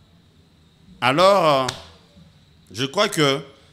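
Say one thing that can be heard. A young man speaks clearly into a microphone, in short bursts.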